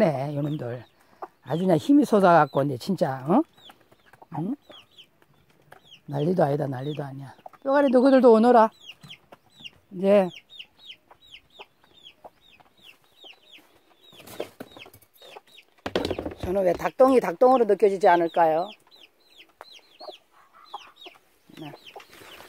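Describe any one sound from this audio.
Hens cluck and chirp softly close by.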